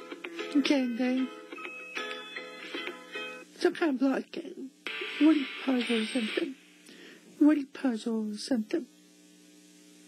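A young girl speaks excitedly, close by.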